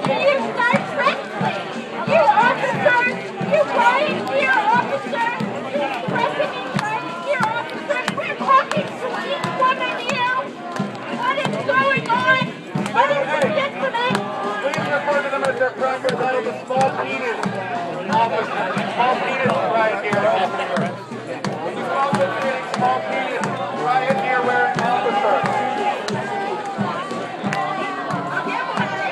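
A large crowd of men and women shouts and chants loudly close by, outdoors.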